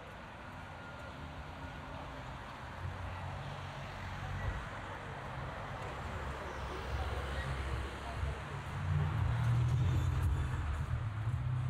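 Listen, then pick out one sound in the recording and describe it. Car engines and tyres pass by on a street outdoors.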